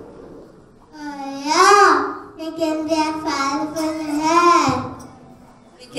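A young boy speaks brightly into a microphone.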